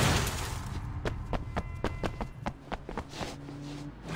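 Footsteps run quickly on a hard wet street.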